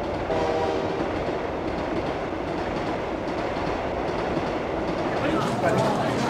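A train rumbles past.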